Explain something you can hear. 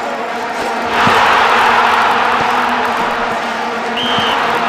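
A stadium crowd bursts into loud cheering.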